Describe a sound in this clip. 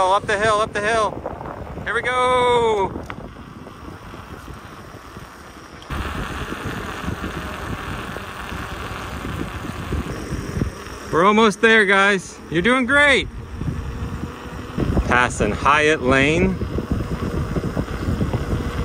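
Bicycle tyres hum steadily on smooth pavement.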